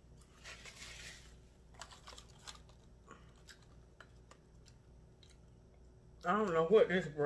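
A woman chews food.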